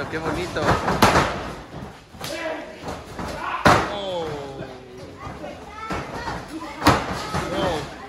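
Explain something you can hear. Bodies slam hard onto a wrestling ring's canvas.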